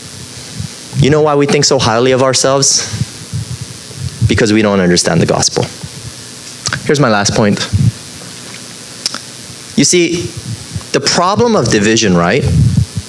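A man speaks calmly through a microphone in a large echoing room, pausing between phrases.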